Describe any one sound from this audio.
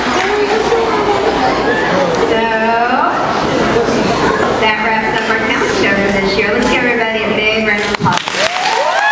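A young woman speaks into a microphone in a large echoing hall.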